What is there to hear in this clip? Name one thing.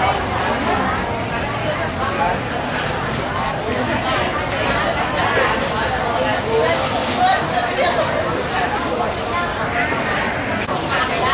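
A plastic bag rustles as fruit is dropped into it.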